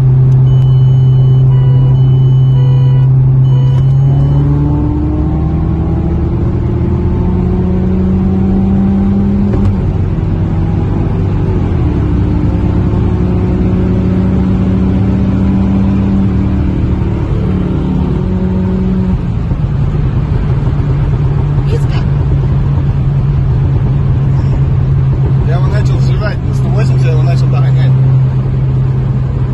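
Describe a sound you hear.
A car engine hums steadily at speed, rising and falling in pitch as the gears change.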